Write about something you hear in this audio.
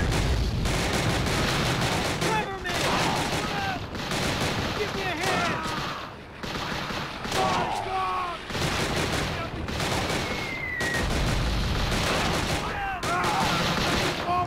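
Rifle shots crack.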